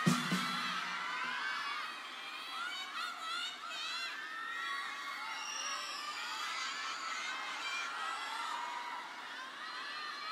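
A large crowd of young voices sings and cheers loudly in a vast echoing arena.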